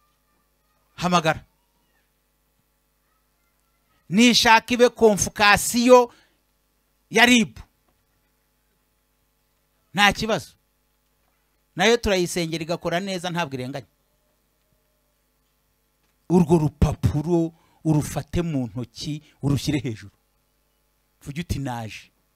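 A man speaks forcefully through a microphone in short bursts with pauses.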